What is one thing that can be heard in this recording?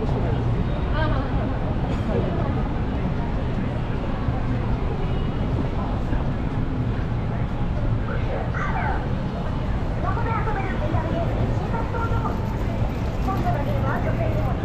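City traffic rumbles steadily.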